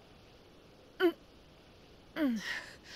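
A young woman murmurs weakly close by.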